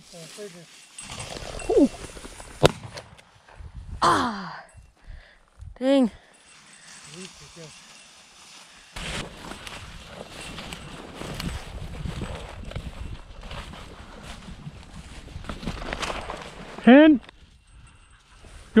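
Footsteps crunch and rustle through dry grass close by.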